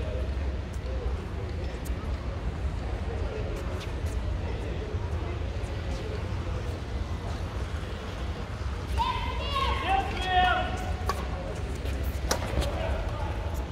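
Rackets hit a shuttlecock back and forth in a large echoing hall.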